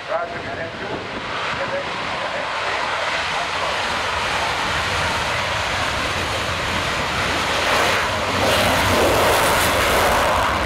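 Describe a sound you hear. A jet engine roars and grows louder outdoors.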